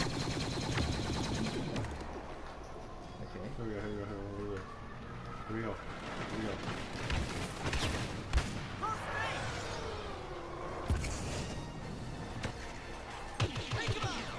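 Laser guns fire in short bursts of sharp shots.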